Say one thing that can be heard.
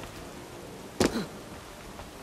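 A heavy thud sounds as a body lands on stone.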